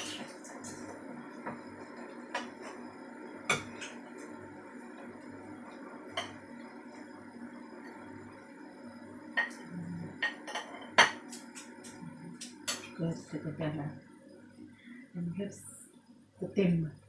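A utensil clinks and scrapes against a plate.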